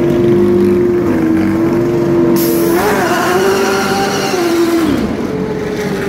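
A race car engine idles loudly, then revs hard as the car pulls away.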